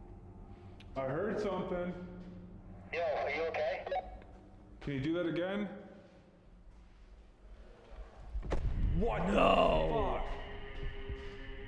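A young man speaks in short, excited bursts into a microphone.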